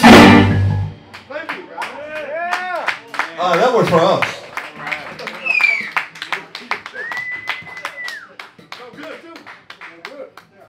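Drums tap out a beat with cymbal hits.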